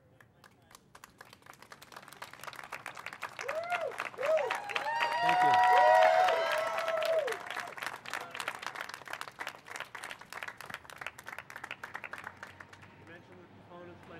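People applaud outdoors.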